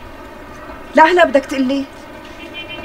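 A woman speaks quietly on a phone.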